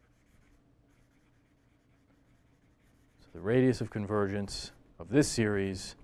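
A marker squeaks faintly on paper.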